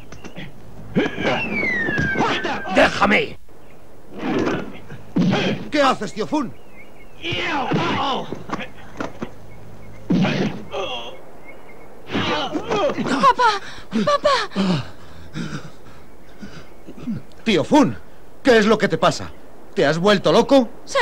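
An elderly man shouts and grunts with effort.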